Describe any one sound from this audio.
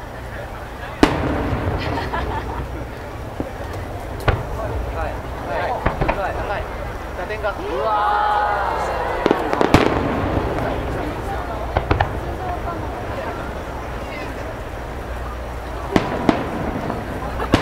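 Fireworks burst with loud booms in the distance.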